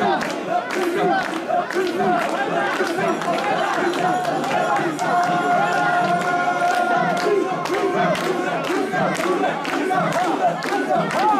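People clap their hands in time.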